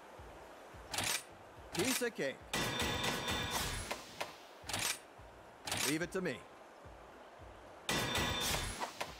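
Game confirmation chimes and whooshes sound as choices are selected.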